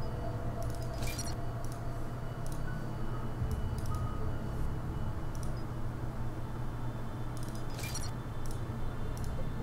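Short electronic clicks sound as menu options are selected.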